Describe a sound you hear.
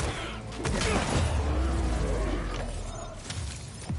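An electric blast crackles and sizzles.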